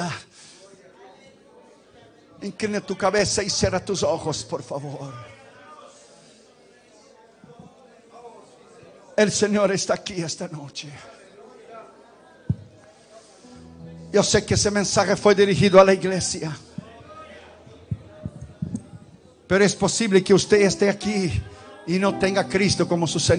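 A man preaches forcefully into a microphone in bursts, amplified through loudspeakers in an echoing hall.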